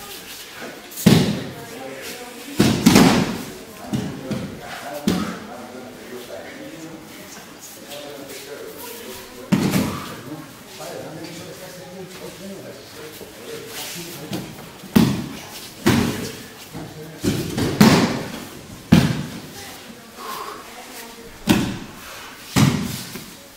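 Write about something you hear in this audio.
Bodies thud heavily onto a padded floor in an echoing hall.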